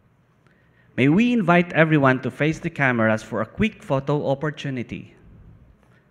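A man announces through a loudspeaker in a large hall.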